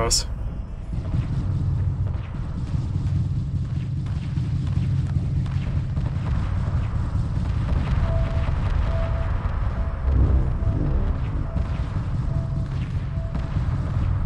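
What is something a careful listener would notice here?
Laser cannons fire with a steady, crackling hum.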